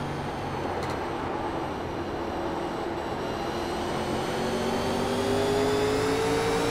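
A race car engine drones loudly and slowly rises in pitch.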